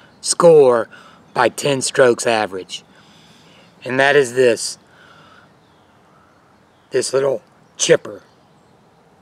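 An older man talks calmly and close by, in short bursts.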